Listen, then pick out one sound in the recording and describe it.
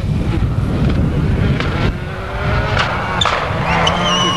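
A rally car engine roars and revs as the car speeds closer.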